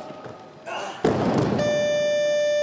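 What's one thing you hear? A heavy barbell crashes down onto the floor.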